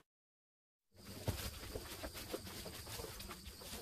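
A horse munches and tears at hay close by.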